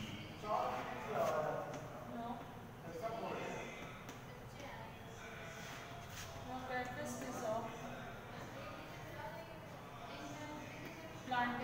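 Chalk scrapes and taps on a blackboard.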